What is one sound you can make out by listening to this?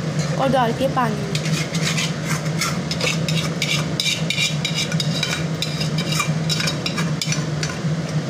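A spoon scrapes against a metal pan.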